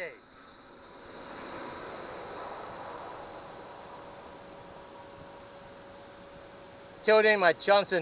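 An electric trim motor hums steadily as an outboard engine tilts.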